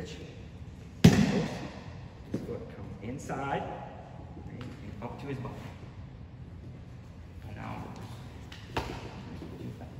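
Bodies thump and shuffle on a mat.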